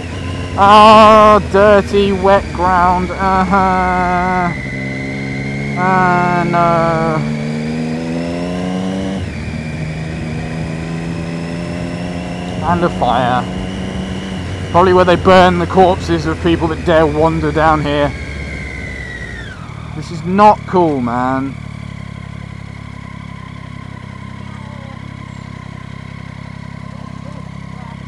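A motorcycle engine hums and revs while riding.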